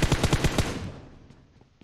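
Rapid gunfire rattles loudly in a quick burst.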